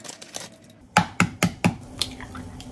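An egg cracks against a bowl.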